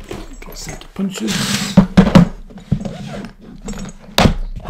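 A plastic case knocks and rattles onto a table.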